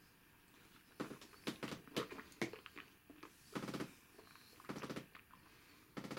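A man smacks and puffs his lips.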